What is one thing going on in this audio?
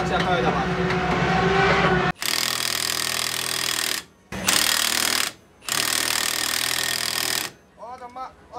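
A helicopter engine roars steadily with whirring rotor blades.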